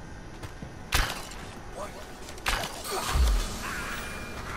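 A heavy blow lands with a dull thud.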